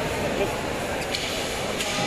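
A crowd of people chatters in the background of a large echoing hall.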